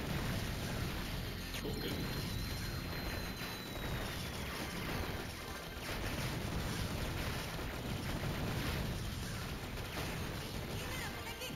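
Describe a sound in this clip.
Loud explosions boom as enemies are destroyed.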